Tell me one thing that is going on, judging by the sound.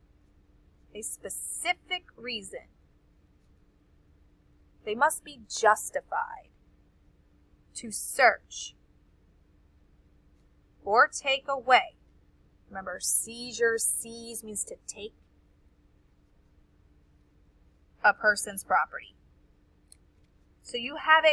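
A woman speaks calmly through a microphone in short phrases.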